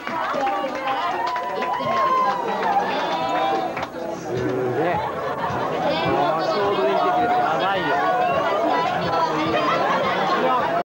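A crowd of young people shouts and cheers loudly in an echoing hall.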